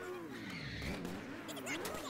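Tyres squeal as a car slides around a corner.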